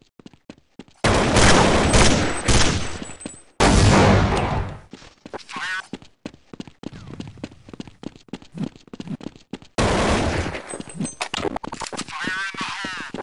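Rifle gunfire rattles in loud bursts.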